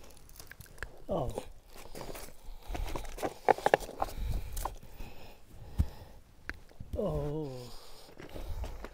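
A man groans loudly in discomfort.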